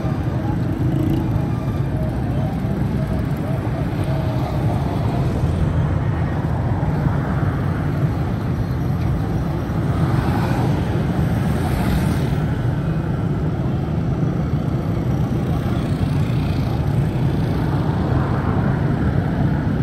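Motorbike and rickshaw engines putter and drone steadily on a busy street outdoors.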